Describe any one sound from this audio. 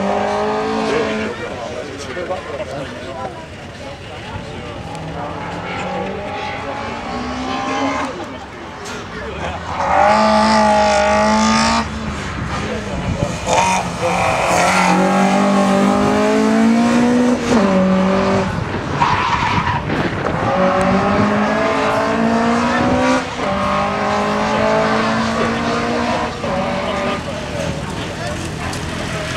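A car engine revs hard and roars as it races past, rising and falling with each gear change.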